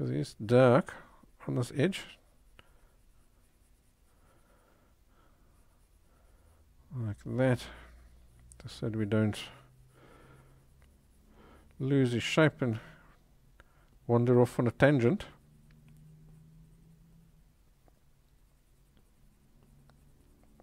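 A pencil scratches softly across paper.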